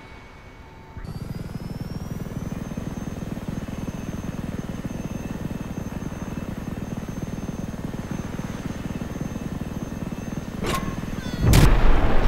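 A helicopter's rotor thuds steadily overhead.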